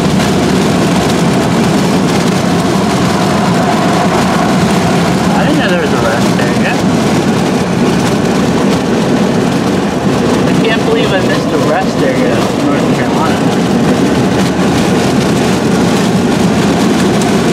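A car's engine hums steadily from inside the car.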